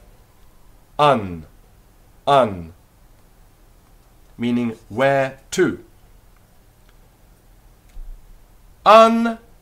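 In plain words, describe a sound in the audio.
A man speaks clearly and slowly close by, saying single syllables with pauses between them.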